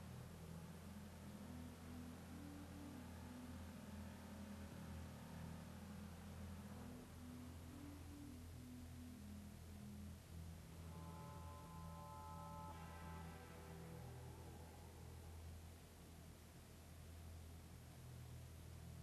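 A car engine hums steadily as the car drives slowly.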